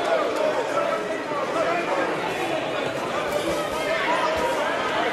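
A crowd of spectators talks and shouts in a large echoing hall.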